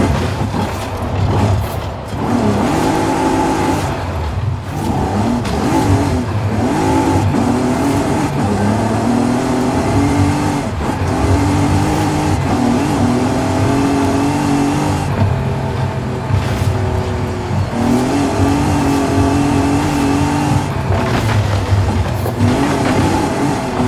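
A car engine roars and revs up and down as the car speeds along.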